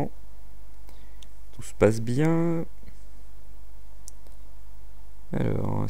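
A young man speaks briefly into a headset microphone.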